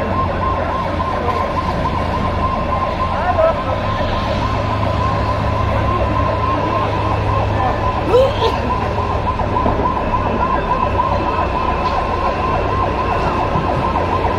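A water cannon sprays with a loud hiss.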